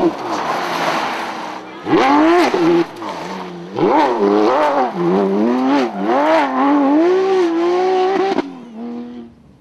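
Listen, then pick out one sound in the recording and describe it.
A rally car engine revs hard and roars through a bend.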